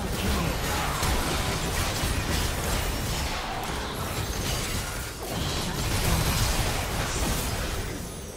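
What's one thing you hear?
Magic blasts crackle and burst in a hectic battle.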